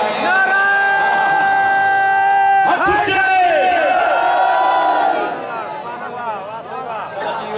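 A crowd of men chants a slow, mournful lament loudly together.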